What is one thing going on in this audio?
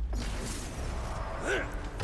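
An axe swings through the air with a whoosh.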